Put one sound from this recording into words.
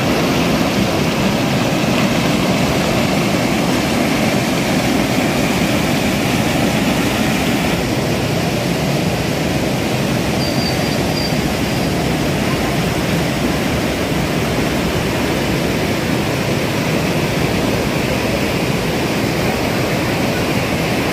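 A swollen river rushes and roars loudly nearby.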